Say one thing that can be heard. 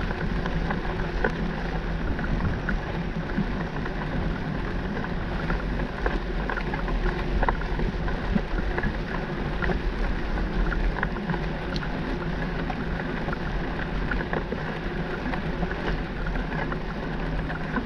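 Wind buffets the microphone outdoors with a steady low rumble.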